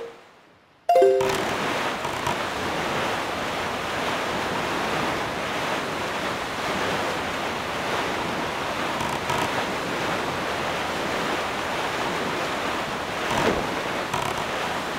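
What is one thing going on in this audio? A small sailboat rushes through open water.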